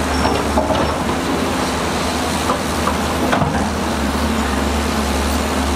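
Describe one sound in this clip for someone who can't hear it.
Rocks and dirt clatter as the machines push them.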